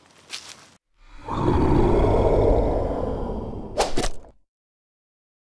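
A monster lets out a deep, loud roar.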